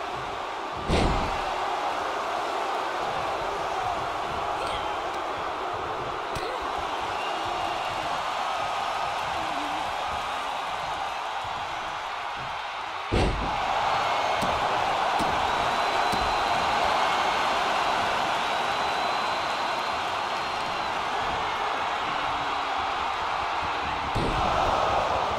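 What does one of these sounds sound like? A body slams hard onto a wrestling ring mat with a loud thud.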